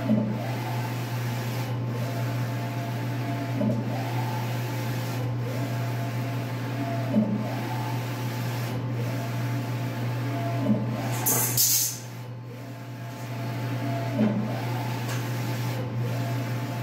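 A print head clacks to a stop at each end of its pass.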